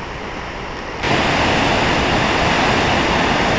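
A river rushes loudly over rocks close by.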